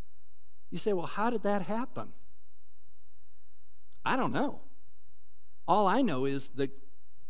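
A middle-aged man speaks with animation through a microphone in a large room.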